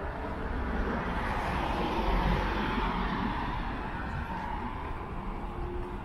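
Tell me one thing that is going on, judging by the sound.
A car drives past on the street.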